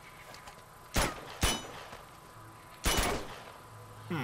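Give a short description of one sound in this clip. A gun fires several sharp shots.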